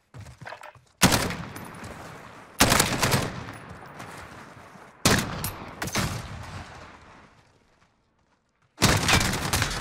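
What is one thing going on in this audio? A rifle fires loud single shots that echo away.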